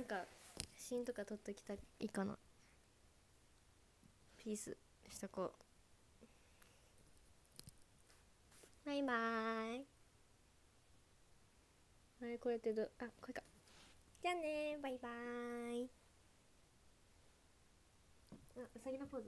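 A young woman speaks softly and playfully close to a microphone.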